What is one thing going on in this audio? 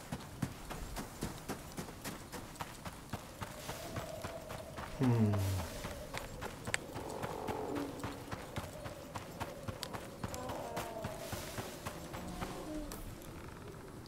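Footsteps crunch quickly over snow and dry grass.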